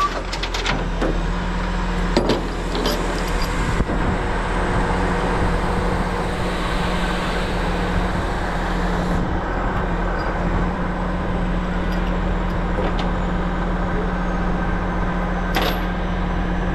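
Metal clanks on a tilted truck bed.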